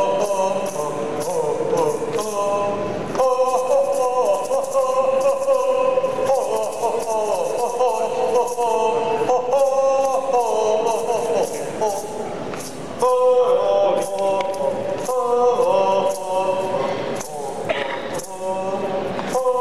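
A man sings into a microphone, loud through loudspeakers.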